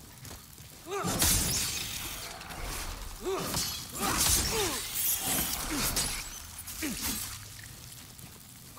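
Heavy blows and bursts of fire sound in a fast fight.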